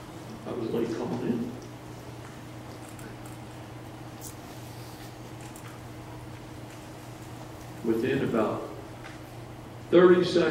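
A middle-aged man speaks calmly into a microphone in a large hall, with pauses between phrases.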